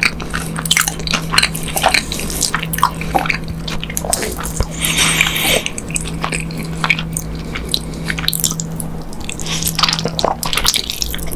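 A person chews food wetly and smacks their lips close up.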